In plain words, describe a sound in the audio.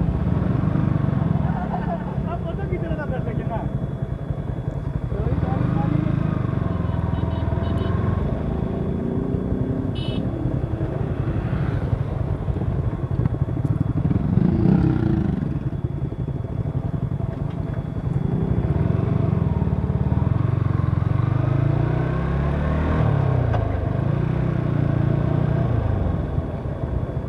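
A motorcycle engine hums and revs as the bike rides along a road.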